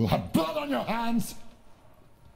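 A woman speaks in a low, menacing voice.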